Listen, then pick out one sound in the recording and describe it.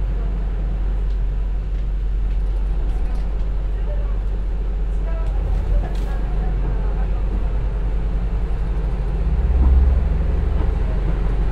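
Train wheels clatter on the rails.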